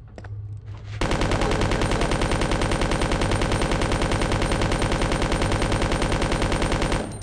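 A gun fires rapidly and without pause.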